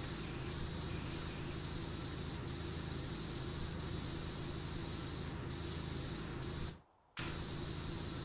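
A pressure washer sprays water in a steady, hissing rush with a low hum.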